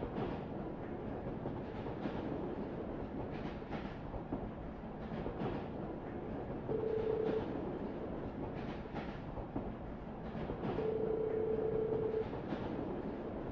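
A tram rumbles steadily along its track.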